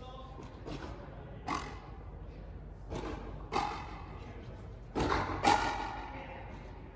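A ball smacks against rackets and a high wall, echoing around a large hard-walled court.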